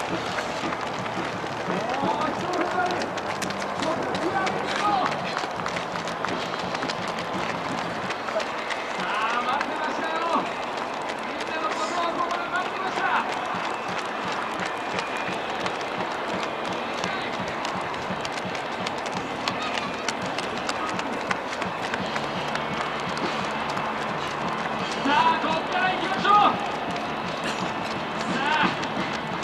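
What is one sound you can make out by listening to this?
Runners' footsteps patter on a paved road.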